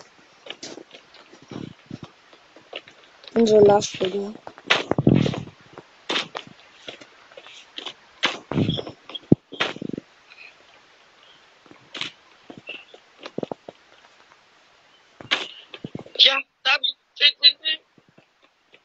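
Footsteps patter quickly in a video game.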